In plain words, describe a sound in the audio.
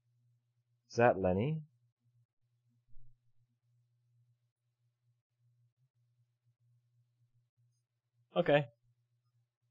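A man speaks with animation up close.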